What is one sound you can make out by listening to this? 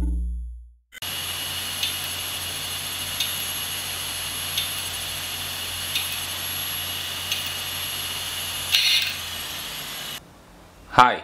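A small motor whirs steadily with a faint regular ticking.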